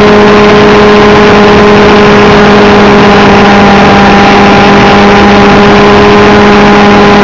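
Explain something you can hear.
A small engine whines loudly and steadily at close range.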